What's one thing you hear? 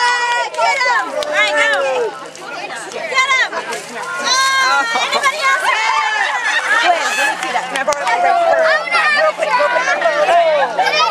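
Young women squeal and laugh loudly nearby.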